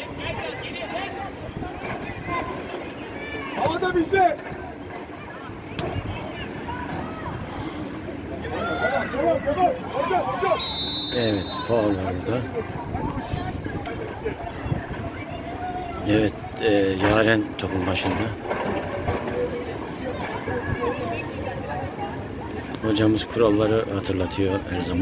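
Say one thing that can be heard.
Young women shout and call to each other outdoors across an open field.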